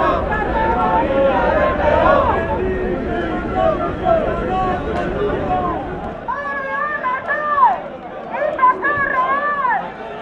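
A large crowd of men and women shouts and chants outdoors.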